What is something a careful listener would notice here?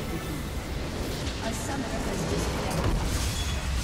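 Magic blasts crackle and boom in a busy battle.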